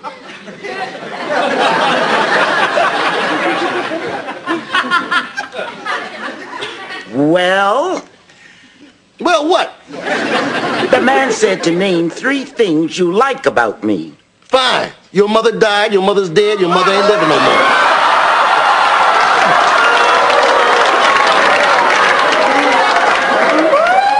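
A group of people laugh loudly.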